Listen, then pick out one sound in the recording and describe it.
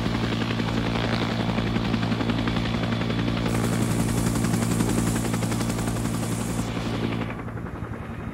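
A helicopter's engine whines loudly.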